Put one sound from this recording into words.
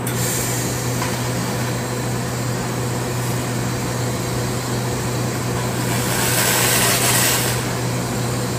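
A laser tool hisses and crackles against metal.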